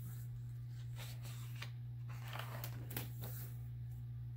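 A sketchbook page rustles and flaps as it is turned.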